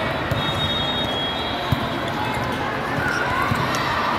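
A volleyball thuds against hands.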